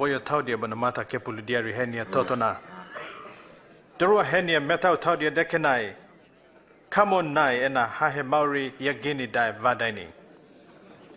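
A man reads aloud in a calm, solemn voice, close by.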